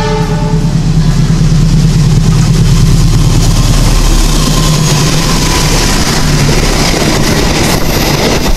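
A diesel locomotive rumbles loudly as it approaches and passes close by.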